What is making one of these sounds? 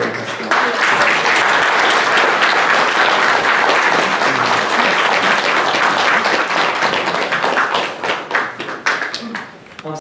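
A large audience applauds loudly in a hall, then the clapping fades.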